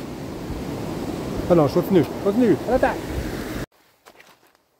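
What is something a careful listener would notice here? A river rushes nearby.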